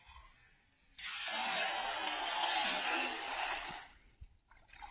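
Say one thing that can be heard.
A cast net lands on the water with a long, hissing splash.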